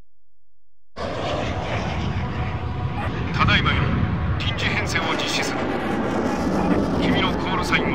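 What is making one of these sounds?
Jet engines roar steadily as fighter planes fly close together.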